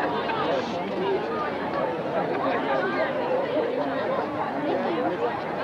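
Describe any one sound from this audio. Several young people chatter at once nearby, outdoors.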